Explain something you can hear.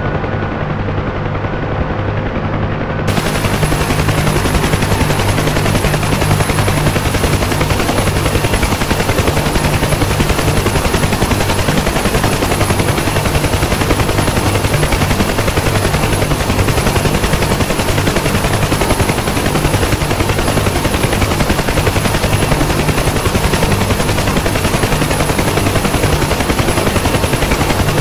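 A helicopter engine whines loudly.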